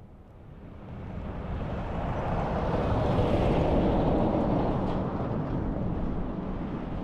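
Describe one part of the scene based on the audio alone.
A heavy truck rumbles past, loud and close.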